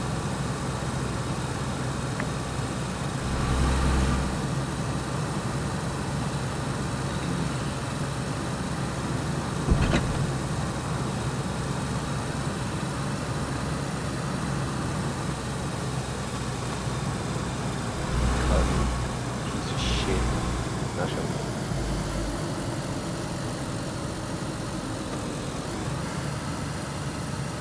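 Car tyres rumble and crunch over a bumpy dirt track.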